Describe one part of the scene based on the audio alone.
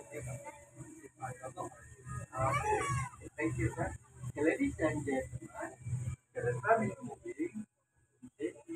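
Women and men talk casually nearby.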